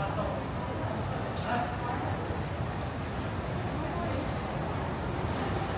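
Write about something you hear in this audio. Distant crowd chatter echoes through a large indoor hall.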